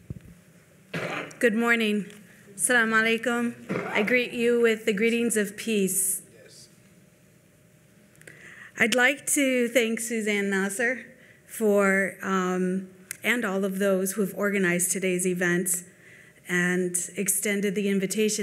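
A middle-aged woman speaks calmly into a microphone in an echoing hall.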